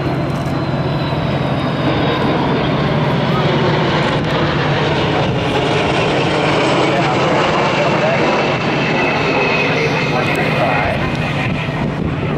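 A four-engine jet tanker roars overhead on a low, slow fly-by.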